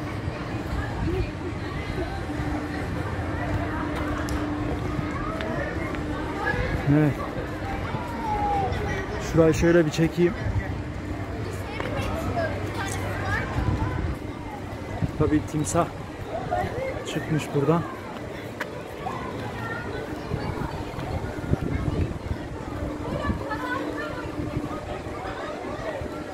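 A crowd of adults and children chatters at a distance outdoors.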